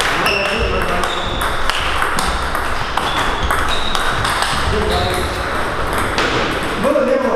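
Ping-pong balls click sharply off paddles and tables in a quick rhythm, echoing in a large hall.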